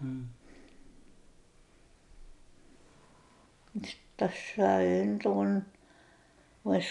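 An elderly woman speaks slowly and quietly, close by.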